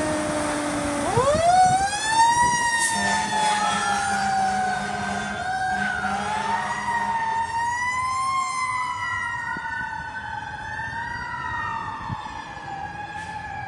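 A fire truck's siren wails, rising and falling as it moves away.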